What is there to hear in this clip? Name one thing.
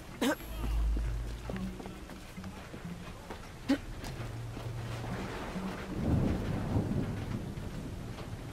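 Footsteps thud on wooden planks and metal.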